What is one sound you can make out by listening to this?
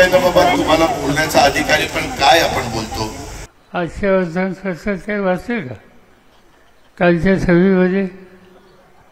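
An elderly man speaks with animation into a microphone over loudspeakers.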